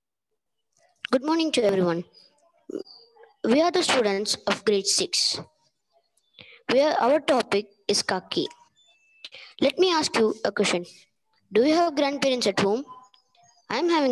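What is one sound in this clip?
A young child speaks in short bursts over an online call, with pauses between phrases.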